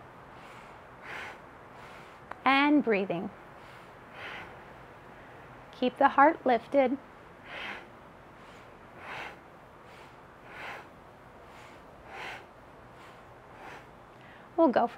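A young woman breathes slowly and audibly in and out.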